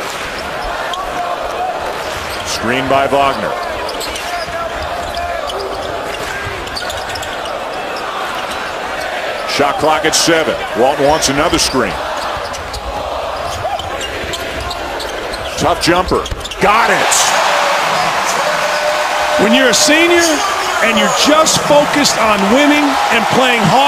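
A large crowd murmurs and then cheers loudly in an echoing arena.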